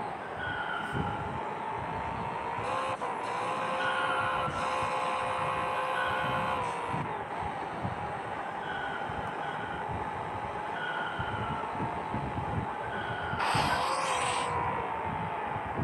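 A car engine hums steadily and rises in pitch as it speeds up.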